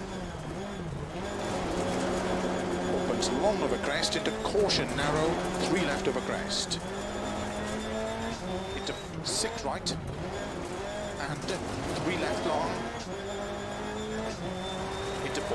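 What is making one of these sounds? Gravel rattles under a car's tyres.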